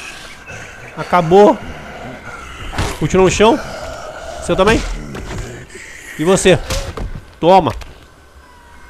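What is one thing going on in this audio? Heavy blows land with wet, fleshy thuds.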